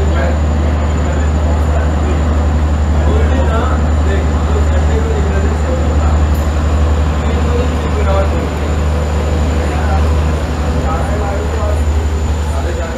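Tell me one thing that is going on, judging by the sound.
A train engine hums steadily at low pitch as the train pulls away.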